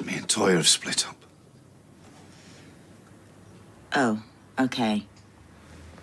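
A man speaks quietly in a low voice.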